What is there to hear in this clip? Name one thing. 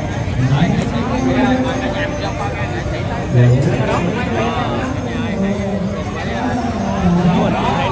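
A crowd of men and women talk and shout excitedly close by, outdoors.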